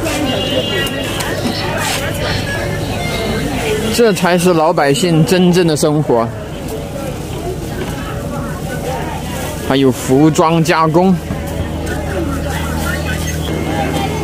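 A crowd chatters in a busy outdoor market.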